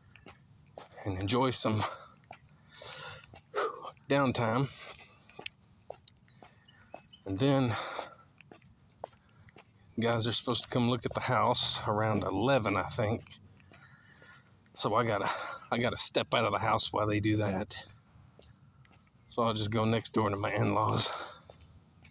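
A middle-aged man speaks close to the microphone in short bursts with pauses.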